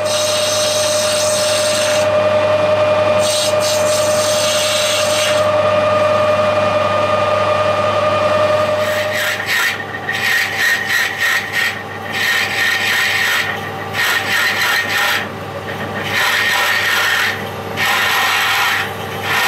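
A metal lathe hums steadily as it spins.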